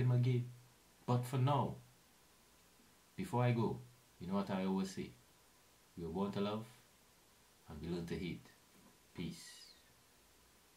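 A young man talks calmly and close to a microphone, in short bursts.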